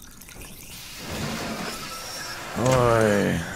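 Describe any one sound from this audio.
A spray hisses in a sharp burst of steam.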